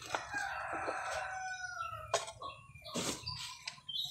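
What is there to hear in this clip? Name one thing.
A bundle of dry stalks scrapes and rustles.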